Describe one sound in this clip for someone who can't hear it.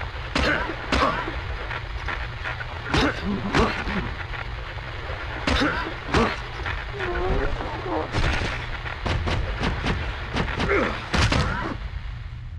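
Heavy punches thud against a body.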